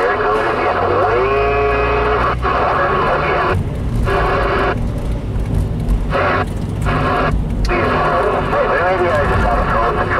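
A car engine rumbles as the car pulls away and drives on a wet road.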